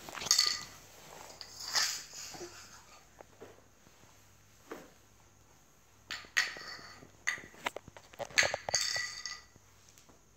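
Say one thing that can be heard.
Toy xylophone bars ring with bright tinkling notes.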